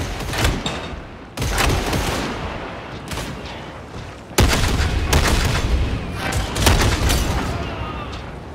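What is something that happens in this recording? Gunshots fire in quick bursts with loud sharp cracks.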